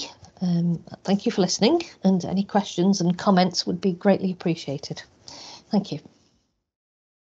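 A woman speaks calmly, heard through an online call.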